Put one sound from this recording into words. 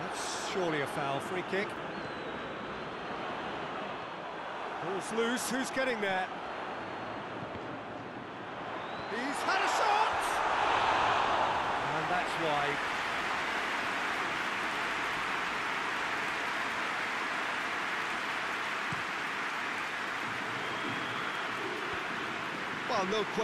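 A large stadium crowd roars and cheers steadily, swelling for a moment.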